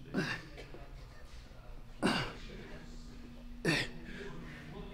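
A man grunts sharply with effort, again and again.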